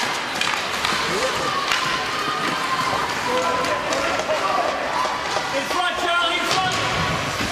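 A hockey stick slaps a puck.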